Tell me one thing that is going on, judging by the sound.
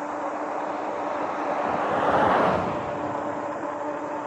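A pickup truck drives past, its rush swelling and then fading.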